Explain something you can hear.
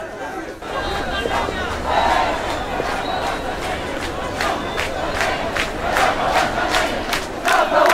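A young man shouts close by.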